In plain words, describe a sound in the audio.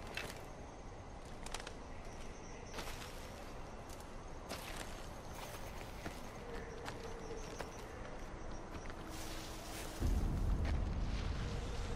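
Footsteps rustle softly through dry grass and brush.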